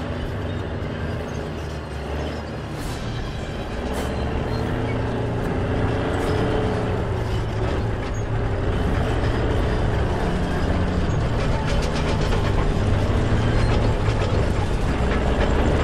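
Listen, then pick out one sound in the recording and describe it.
A heavy tank engine rumbles close by and grows louder.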